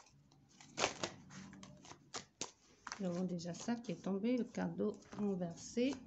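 A card is set down on a sheet of paper with a soft tap.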